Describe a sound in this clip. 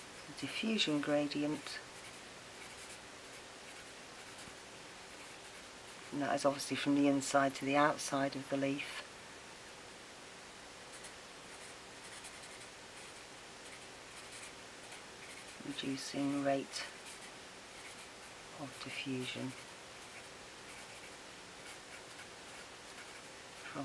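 A marker pen squeaks and scratches on paper.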